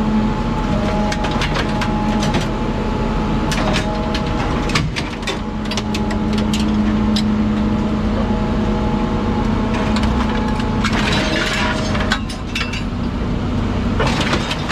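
A heavy machine hums and drones steadily.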